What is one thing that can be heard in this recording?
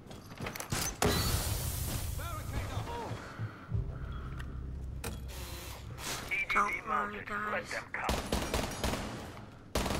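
A smoke grenade bursts and hisses loudly.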